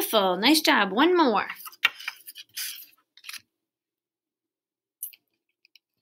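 Paper cards rustle as they are gathered up.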